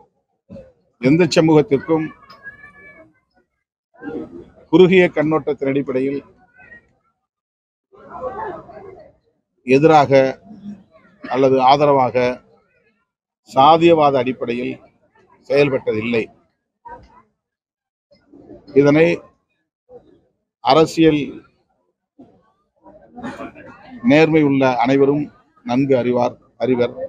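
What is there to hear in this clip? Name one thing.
A middle-aged man speaks firmly and deliberately into a close microphone, in short bursts with pauses.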